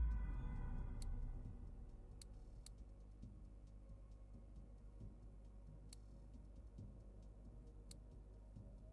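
Short game menu clicks tick now and then.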